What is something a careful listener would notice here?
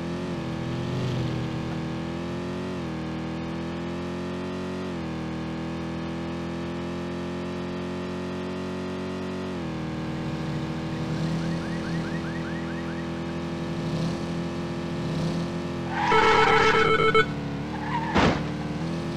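A sports car engine roars steadily, shifting gears as it speeds up.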